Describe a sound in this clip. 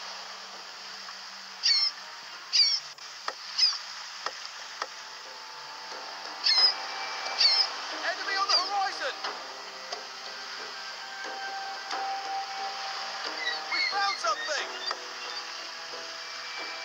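Water rushes and splashes along the hull of a sailing ship moving through open sea.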